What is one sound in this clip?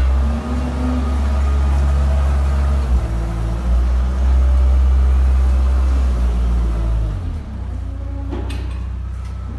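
A metal bucket scrapes and pushes through loose wet material.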